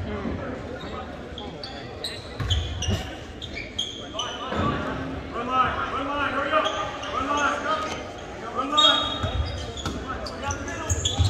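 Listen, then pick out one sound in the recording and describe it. A crowd of spectators talks and cheers in an echoing gym.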